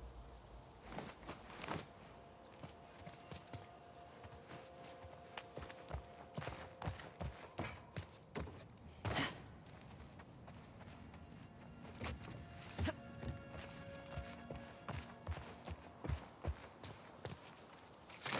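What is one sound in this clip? Footsteps crunch over the ground at a steady walking pace.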